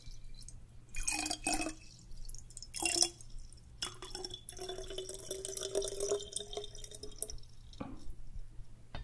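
Liquid pours and trickles into a small bottle, rising in pitch as it fills.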